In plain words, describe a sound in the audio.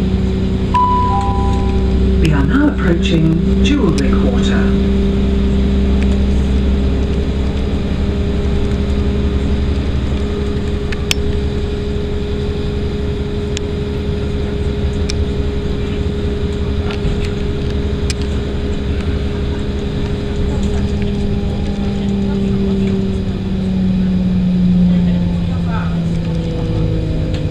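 A train rumbles steadily along the tracks with a low hum.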